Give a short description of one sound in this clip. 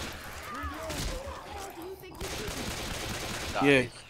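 Pistol shots crack close by.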